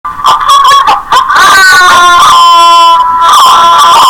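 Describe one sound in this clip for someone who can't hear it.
A cartoon boy exclaims in dismay through a loudspeaker.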